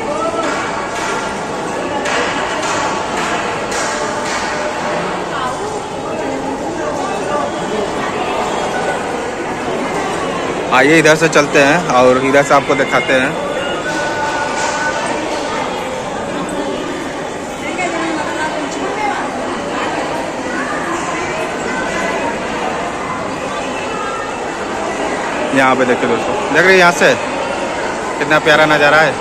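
A crowd of people chatters throughout, in an echoing hall.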